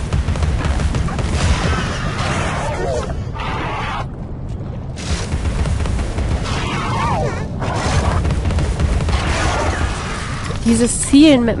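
A heavy gun fires in rapid bursts with loud blasts.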